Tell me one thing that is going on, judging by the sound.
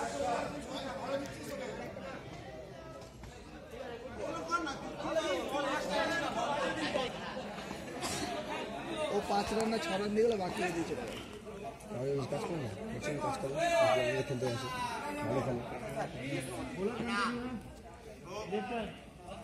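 A crowd of young men shouts and chatters outdoors.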